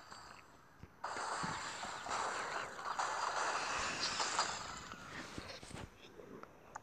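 Wooden and glass blocks crash and tumble down.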